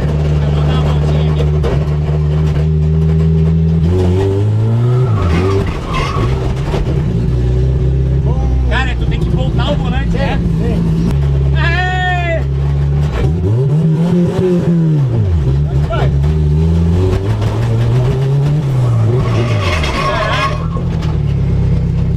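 Tyres squeal on pavement.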